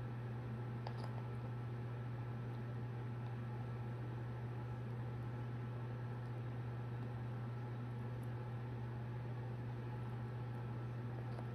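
A ceiling fan hums steadily.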